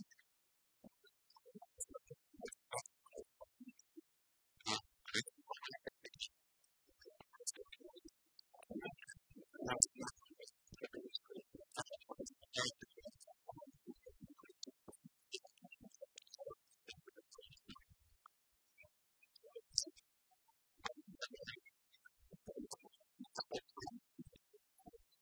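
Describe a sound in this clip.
Keys click on a laptop keyboard.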